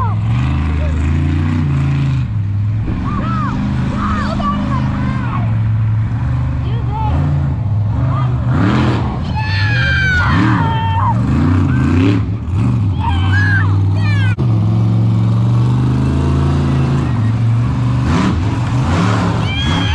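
A monster truck engine roars loudly and revs up and down.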